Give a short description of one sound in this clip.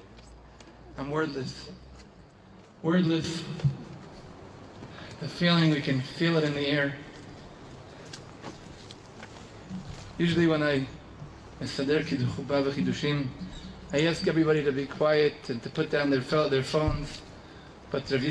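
A man speaks calmly into a microphone, heard through a loudspeaker outdoors.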